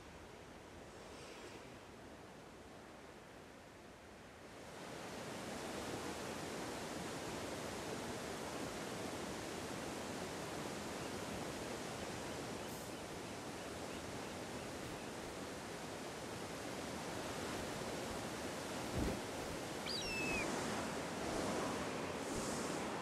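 Waterfalls rush steadily.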